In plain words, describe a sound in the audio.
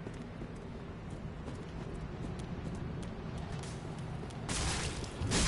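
Footsteps patter quickly over stone.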